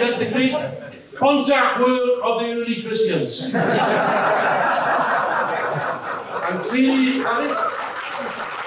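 An older man speaks into a microphone with animation.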